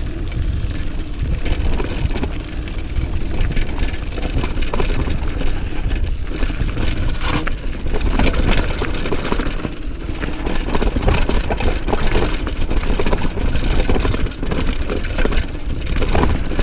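Wind rushes past a fast-moving rider.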